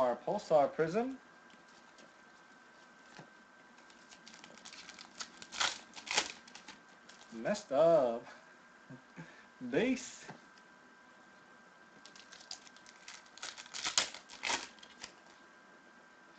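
Trading cards rustle and snap as they are handled and shuffled.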